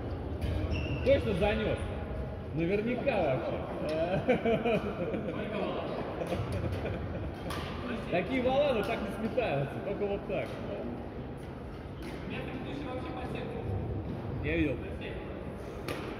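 Young men and women talk and call out across a large echoing hall.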